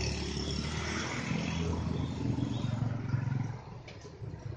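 A motorcycle engine hums close by as it rides past.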